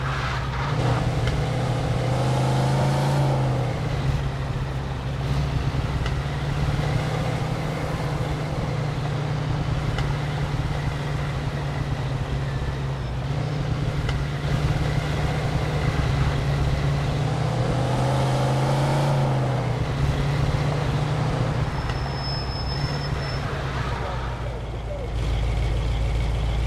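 A car engine hums steadily and revs up and down.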